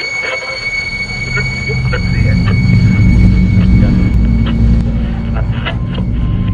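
A car engine rumbles steadily as the car drives along.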